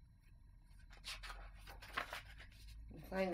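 Paper pages rustle as a book is leafed through.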